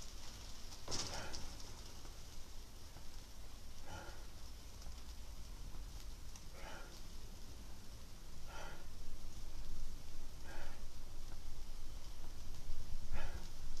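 Bedding rustles softly as someone shifts their legs.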